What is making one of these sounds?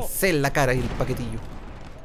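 An explosion booms and roars.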